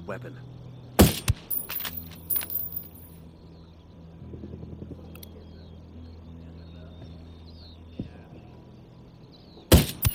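A rifle fires a loud, sharp shot.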